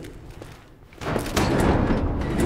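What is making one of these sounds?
A metal gate rattles as it is pushed.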